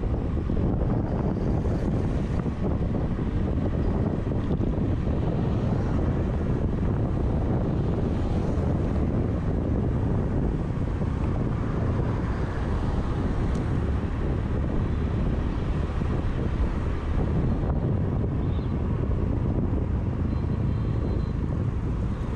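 Wind rushes loudly past, as if outdoors while riding.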